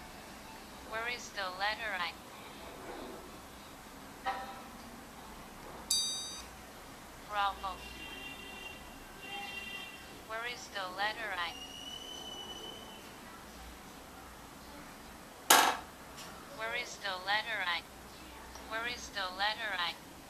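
A phone game plays short bright chimes and jingles.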